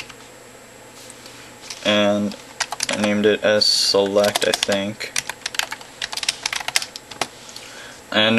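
A computer keyboard clicks as keys are typed.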